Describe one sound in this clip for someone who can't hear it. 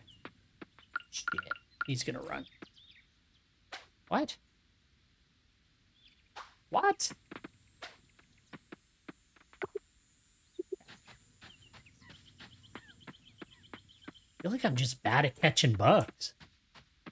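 A man talks into a close microphone in short bursts, with animation.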